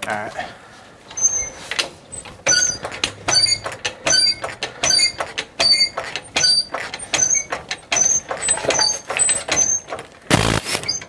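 A floor jack handle pumps with rhythmic clicks and clanks.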